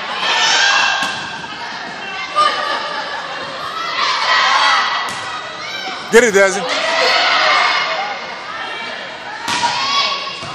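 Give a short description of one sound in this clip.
A volleyball thumps off players' arms.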